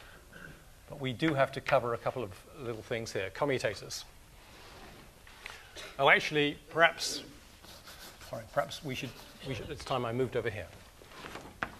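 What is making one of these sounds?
An elderly man speaks calmly, heard through a microphone.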